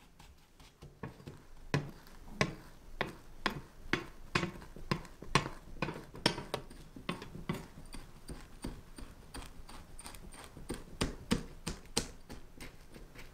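A glass taps and presses crumbs down with soft crunching thuds.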